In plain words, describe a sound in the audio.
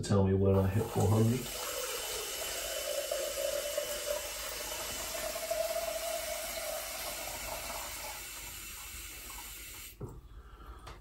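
A small electric machine whirs steadily, then stops.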